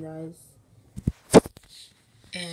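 A phone bumps with a dull thump as it is picked up.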